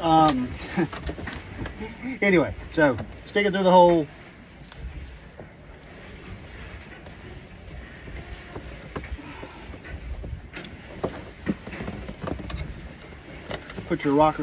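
A man talks calmly up close.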